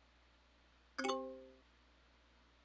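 A game chime rings out with a bright tone.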